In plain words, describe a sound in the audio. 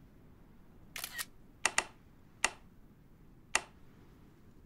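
Short game menu clicks sound one after another.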